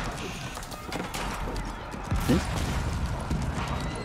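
A cannon fires with a deep boom.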